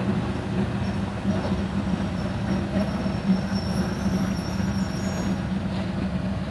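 Train brakes squeal faintly.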